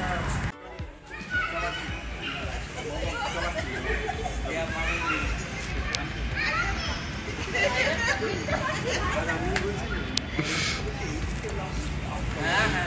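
Several women chat together nearby.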